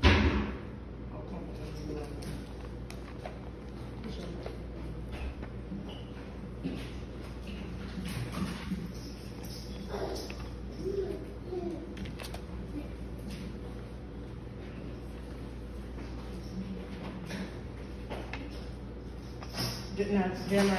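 A woman speaks through a microphone and loudspeaker in a room with a slight echo.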